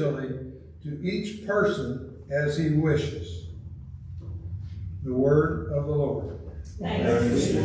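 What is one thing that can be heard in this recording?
An elderly man speaks calmly through a microphone in a reverberant room.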